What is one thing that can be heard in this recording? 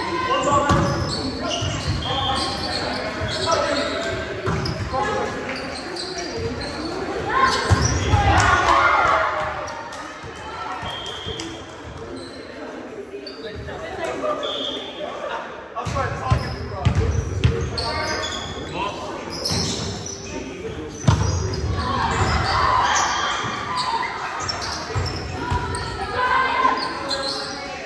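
Young men and women shout and call out to each other in a large echoing gym.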